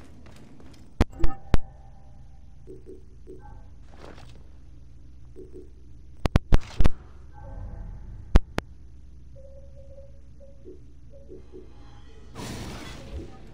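Menu clicks and soft chimes sound in quick succession.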